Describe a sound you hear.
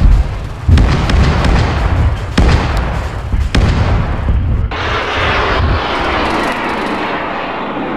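Explosions boom and crack overhead.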